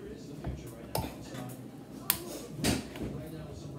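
A glass bottle clinks against another bottle.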